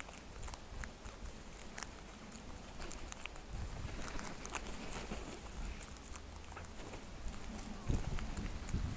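Crows peck and rustle in dry grass close by.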